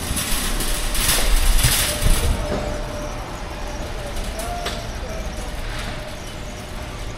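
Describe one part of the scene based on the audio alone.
A shopping cart rattles as it rolls over a hard floor.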